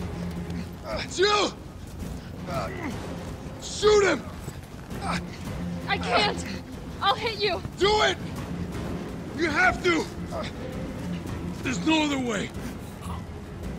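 A man shouts urgently, straining.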